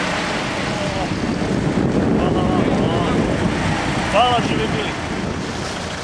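A young woman talks with a driver through a car window.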